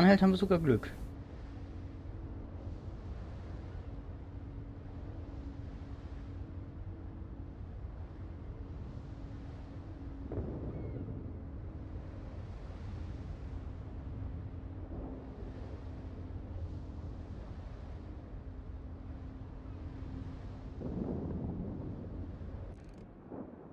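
A ship's engine rumbles and hums steadily.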